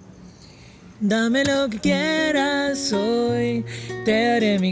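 An acoustic guitar is played close by.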